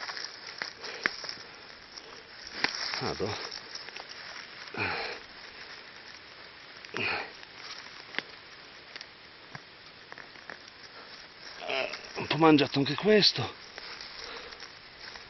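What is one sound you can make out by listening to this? Dry leaves and twigs rustle and snap close by.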